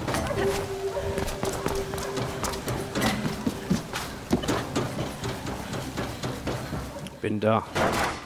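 Footsteps run quickly over hard ground and metal.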